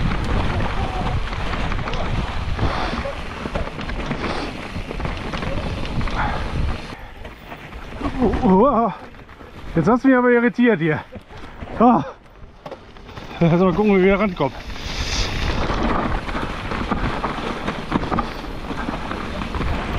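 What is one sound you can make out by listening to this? Bike tyres crunch and rustle over dry leaves.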